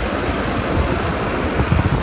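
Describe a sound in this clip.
A fan's knob clicks as it is turned.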